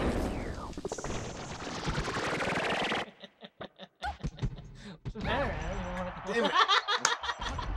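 Sound effects of a fighting video game play, with hits and blasts.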